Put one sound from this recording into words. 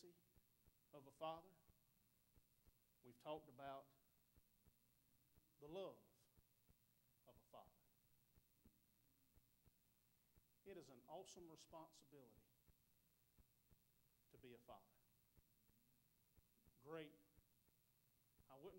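A man speaks in short, emphatic phrases through a microphone, with pauses between them.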